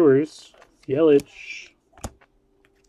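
A plastic wrapper crinkles.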